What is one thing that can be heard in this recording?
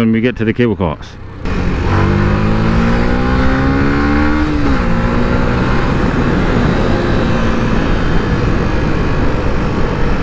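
A motorcycle engine revs up, rising in pitch as it speeds up, then drops as it shifts gear.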